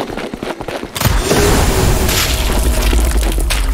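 A rifle fires with a loud bang that echoes.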